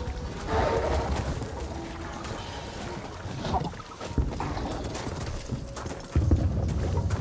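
Footsteps crunch over rubble and stone.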